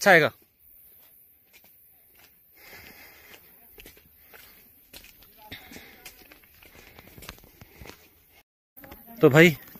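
Footsteps scuff on a stone path.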